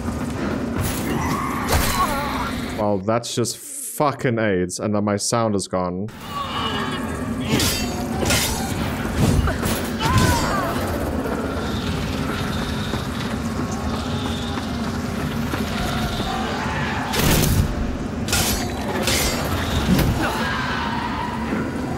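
A sword slashes and clangs against armour.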